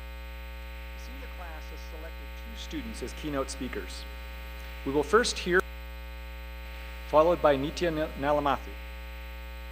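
A man speaks calmly into a microphone over a loudspeaker in a large hall.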